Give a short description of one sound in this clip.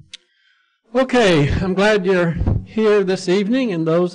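An elderly man speaks into a microphone with animation.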